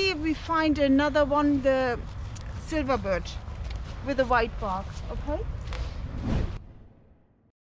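An elderly woman speaks outdoors close by, in a lively voice.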